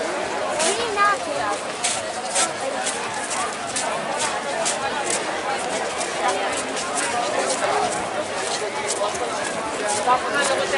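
Footsteps tap on paving as people walk.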